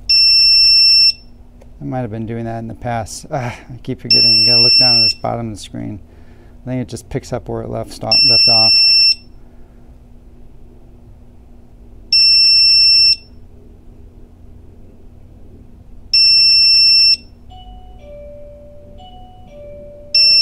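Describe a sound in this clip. An electronic device beeps loudly at regular intervals.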